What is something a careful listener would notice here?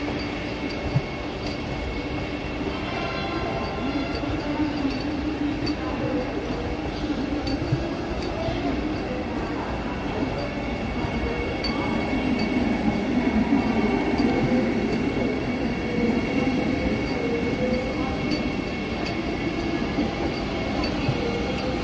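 A train rolls slowly past, its wheels rumbling and clicking over rail joints.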